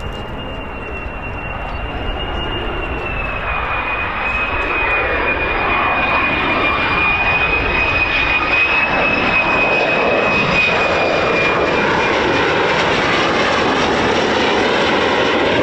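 A jet aircraft roars as it approaches low overhead, growing steadily louder.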